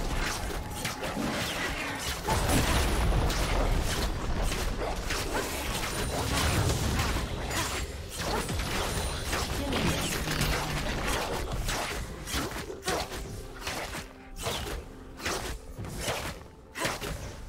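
Magic spells blast and crackle in a busy fight.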